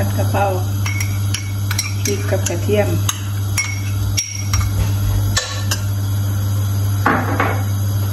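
A metal spoon scrapes and clinks against a bowl.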